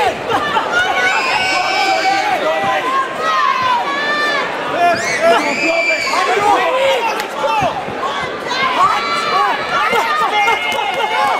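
Gloved punches thud against a boxer's body.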